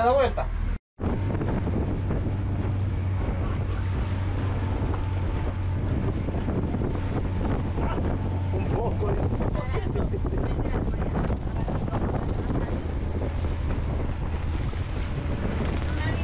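Water splashes and rushes against a moving boat's hull.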